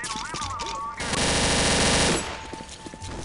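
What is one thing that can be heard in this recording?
A heavy machine gun rattles in a long burst.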